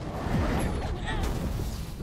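A fiery blast bursts with a crackling roar.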